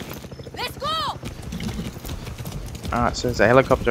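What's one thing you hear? Horse hooves clop on a dirt path.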